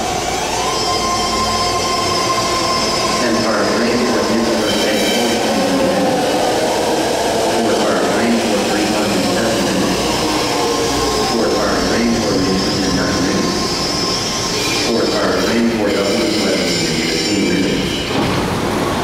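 A subway train rumbles into an echoing underground station and slows to a stop.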